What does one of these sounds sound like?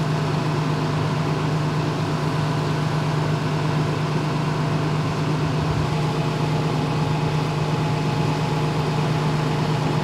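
A fire hose sprays water with a steady rushing hiss.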